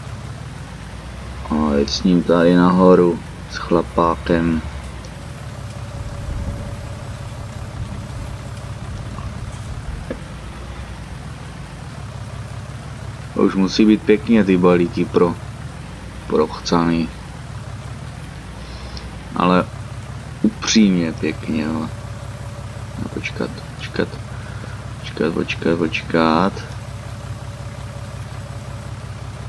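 A tractor engine hums steadily at idle.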